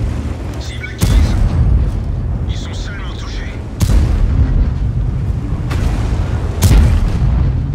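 Tank cannons fire with loud booms.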